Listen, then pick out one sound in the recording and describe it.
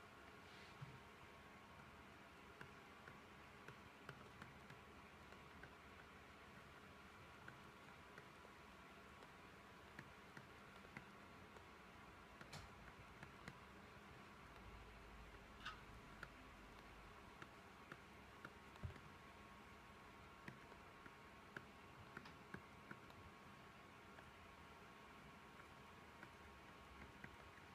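A stylus taps and scratches lightly on a tablet.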